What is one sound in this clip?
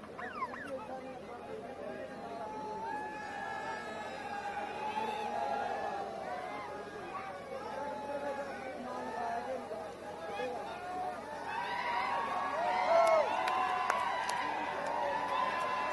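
A crowd cheers and shouts outdoors, growing louder near the end.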